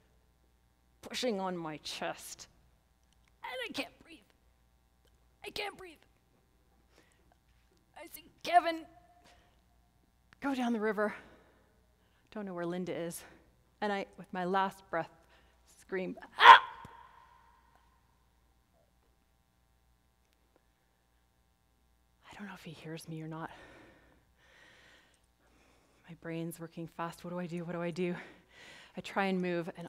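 A woman speaks with animation to an audience through a microphone in a large hall.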